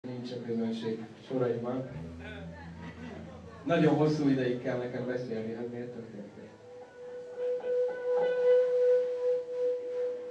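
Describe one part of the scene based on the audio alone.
Electric guitars play loudly.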